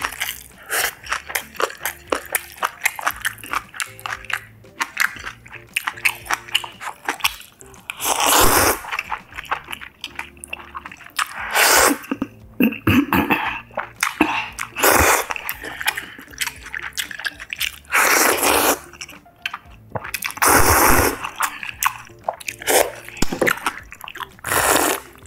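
A young woman chews wetly, close up.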